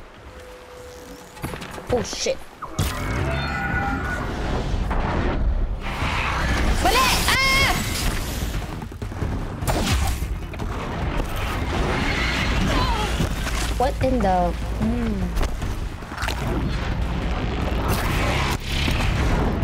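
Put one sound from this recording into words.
A young woman talks into a microphone.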